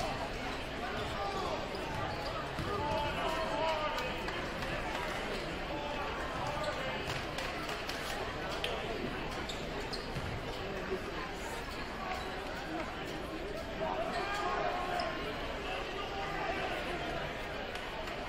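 A large crowd chatters and cheers in a big echoing gym.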